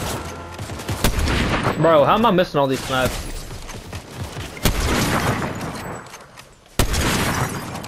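A rifle fires single loud, booming shots.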